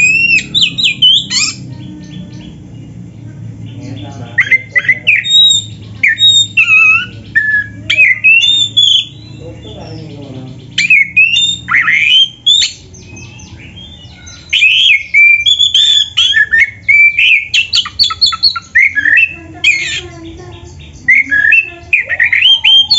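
A songbird sings loud, varied whistling phrases close by, with short pauses between bursts.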